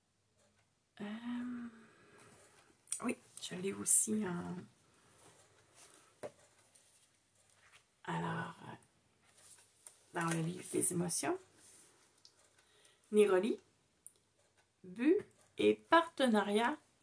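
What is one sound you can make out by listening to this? A middle-aged woman talks calmly and close to a microphone.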